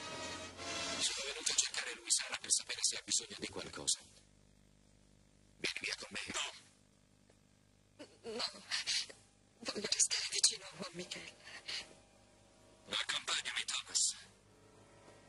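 A woman speaks softly and urgently, close by.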